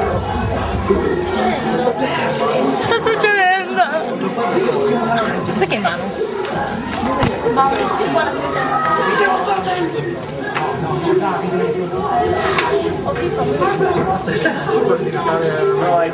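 A young man talks and laughs close to the microphone.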